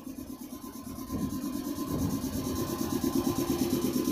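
A train pulls away, its rumble and clatter growing louder.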